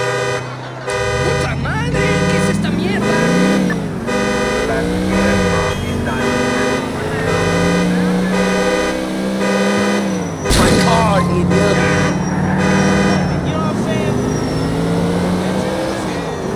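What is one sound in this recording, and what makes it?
A car engine revs up and down as the car drives off.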